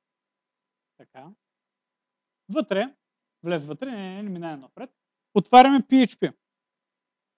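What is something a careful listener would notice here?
A man speaks in short, lively phrases, heard through a microphone.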